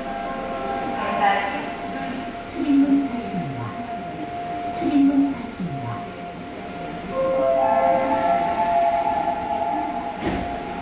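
A loud electric chime rings inside a train car.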